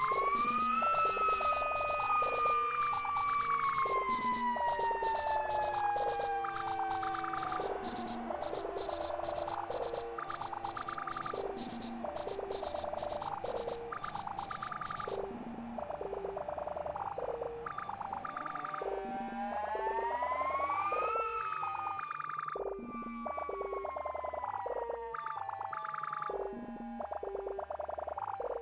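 A synthesizer tone slowly glides down and up in pitch.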